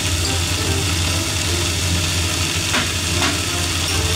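A spoon taps against a frying pan.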